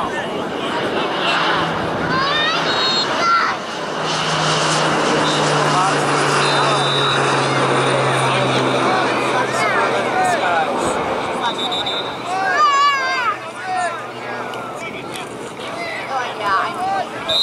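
A crowd of spectators cheers and shouts outdoors, heard from a distance.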